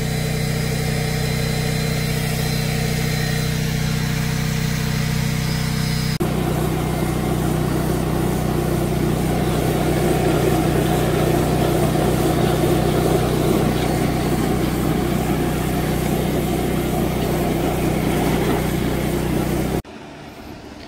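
A carpet cleaning machine hums and whirs steadily, close by, then stops.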